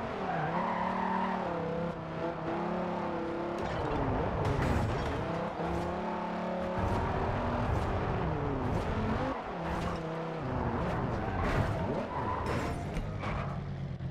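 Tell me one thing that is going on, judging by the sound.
A sports car engine roars and revs up and down at speed.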